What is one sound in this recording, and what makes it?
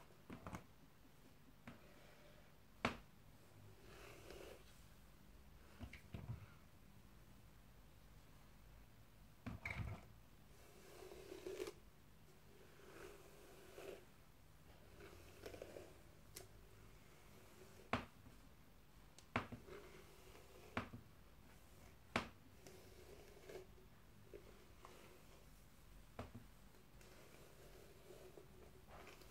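Hands rustle and ruffle long hair close by.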